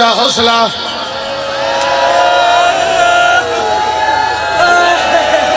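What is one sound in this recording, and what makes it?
A crowd of men chants along in unison.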